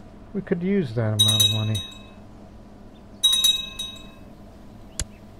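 A short bright chime rings out twice.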